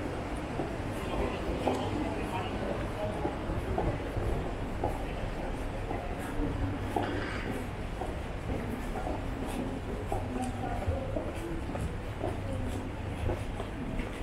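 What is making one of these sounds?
Footsteps tap on stone paving close by.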